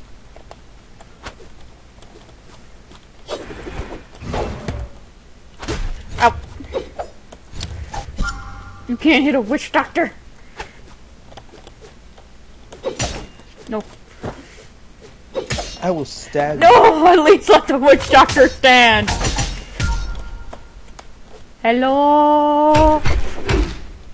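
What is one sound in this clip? Sharp hits and whooshes of cartoon fighters' blows sound in quick bursts.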